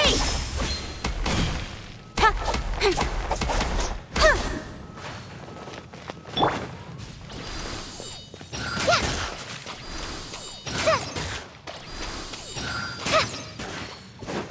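Magic energy blasts crackle and boom.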